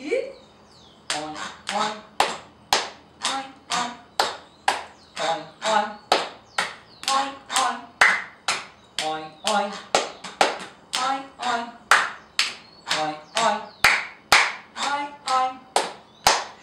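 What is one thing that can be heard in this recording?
A man chants in short rhythmic syllables.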